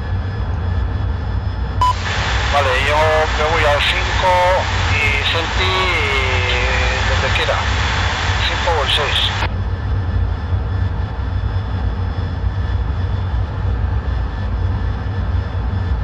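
A jet engine drones with a steady low rumble.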